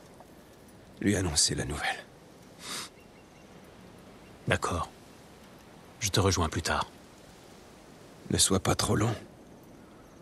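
A man speaks calmly and gravely.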